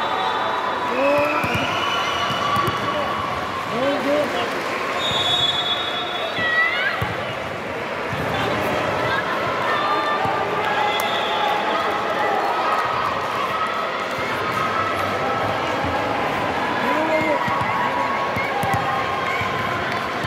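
Shoes squeak on a court in a large echoing hall.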